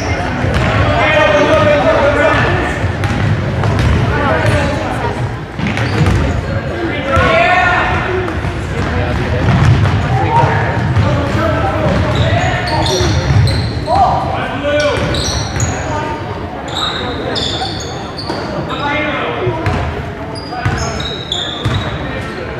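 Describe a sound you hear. Young people shout and call out in a large echoing gym.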